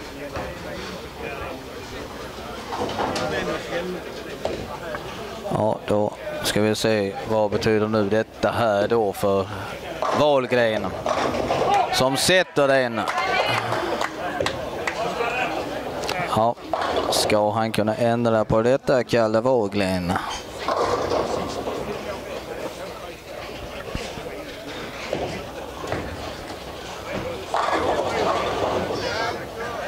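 A crowd of men chatters in a large echoing hall.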